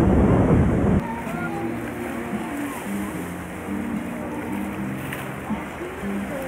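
Sea water laps and splashes.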